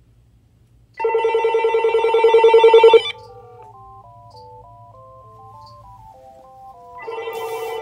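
A telephone rings loudly in bursts of trilling beeps.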